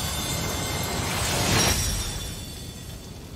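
A magical blast bursts with a loud whoosh.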